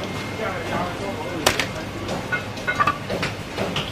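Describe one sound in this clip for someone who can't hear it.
Raw fish flesh slaps down onto a metal tray.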